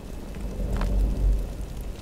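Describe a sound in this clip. A fire crackles in a barrel.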